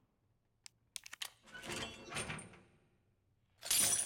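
Bolt cutters snap through a metal chain.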